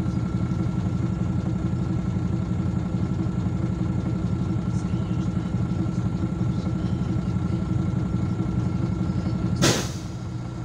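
A bus engine idles with a steady, throbbing low rumble, heard from inside the bus.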